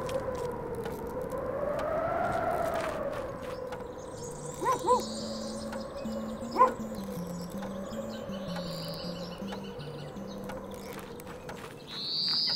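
Simple electronic game music plays steadily.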